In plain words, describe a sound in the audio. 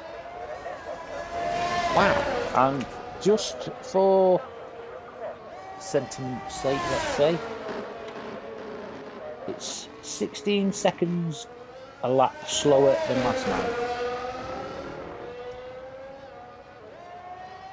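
A racing car engine whines loudly, rising and falling in pitch as it speeds up, brakes and shifts gears.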